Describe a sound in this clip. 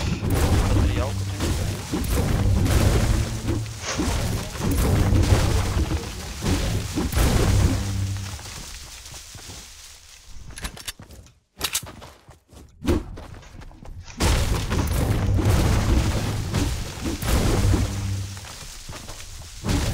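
A pickaxe chops into a tree with repeated thuds.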